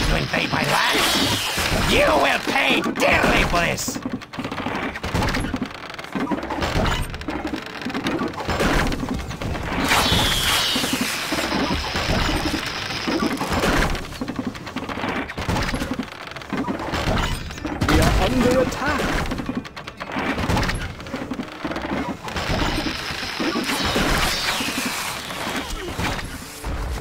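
Fire arrows whoosh through the air.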